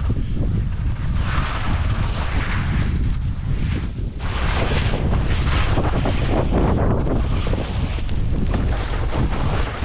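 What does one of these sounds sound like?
Wind rumbles loudly against a microphone.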